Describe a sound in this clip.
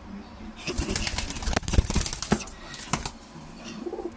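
A pigeon's wings flap and beat rapidly close by.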